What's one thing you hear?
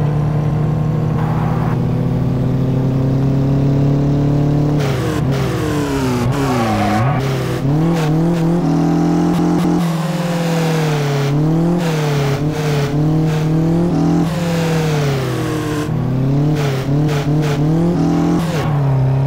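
A car engine roars, revving up and down as it races.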